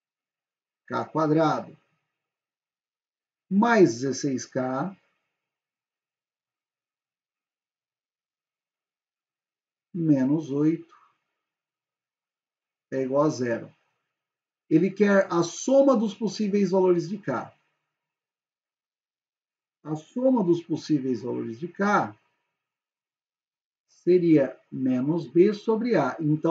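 A young man speaks calmly and close to a microphone, in short phrases with pauses.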